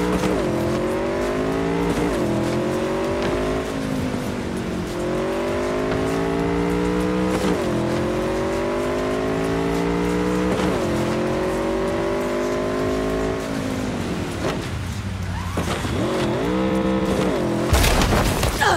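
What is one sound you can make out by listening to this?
A motorcycle engine revs up and shifts gears again and again.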